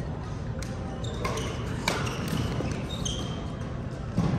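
Sports shoes squeak sharply on a court floor.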